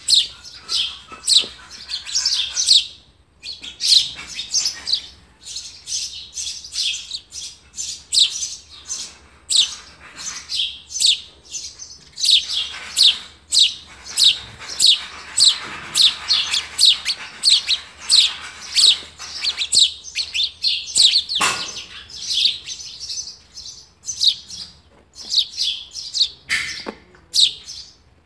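A small bird chirps rapidly and repeatedly from close by.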